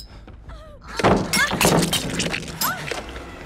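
A wooden pallet crashes down and splinters loudly.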